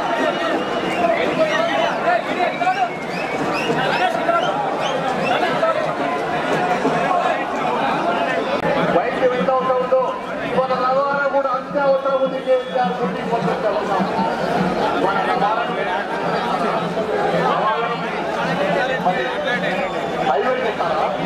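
A crowd of men shouts slogans together outdoors.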